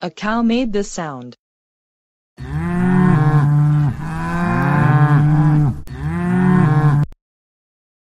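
A cow moos loudly.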